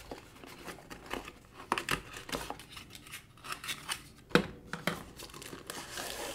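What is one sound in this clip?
Hands open a cardboard box, with card scraping and thumping.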